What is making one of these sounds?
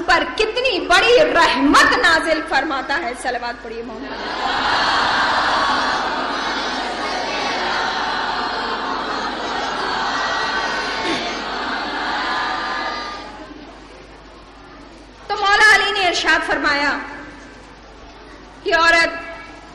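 A young woman speaks with emotion into a microphone.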